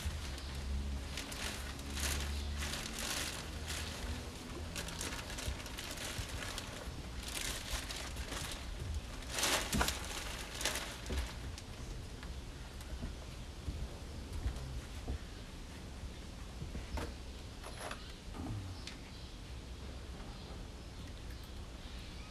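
Screws rattle in a container.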